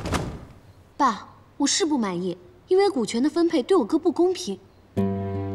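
A young woman speaks in an upset, pleading voice.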